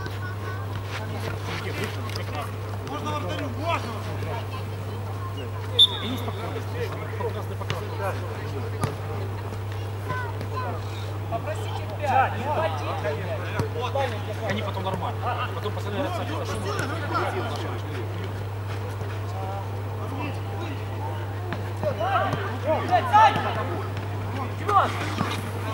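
Young men shout and call out to each other across an outdoor pitch.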